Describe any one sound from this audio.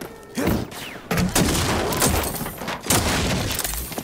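A wooden crate smashes open with a crack.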